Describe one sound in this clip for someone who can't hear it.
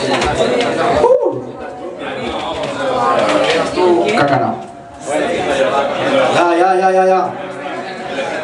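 A young man raps rapidly into a microphone over a loudspeaker.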